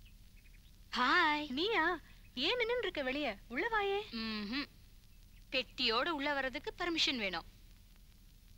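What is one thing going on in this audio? A middle-aged woman speaks nearby with animation.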